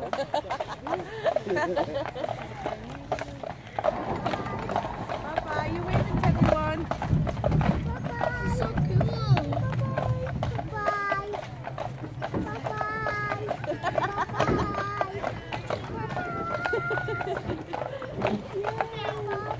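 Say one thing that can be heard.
Horse hooves clop steadily on a paved road.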